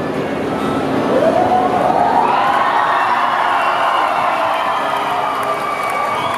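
A voice sings out with long notes through loudspeakers.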